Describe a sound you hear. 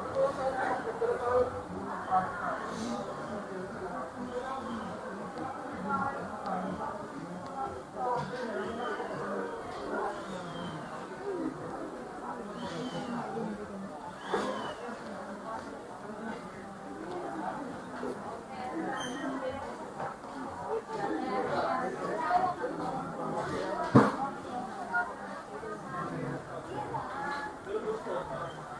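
Men and women chat and murmur nearby in a large, echoing hall.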